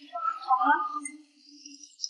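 Water bubbles and churns in a tank.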